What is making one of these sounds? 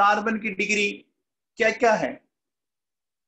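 A man speaks calmly into a microphone over an online call.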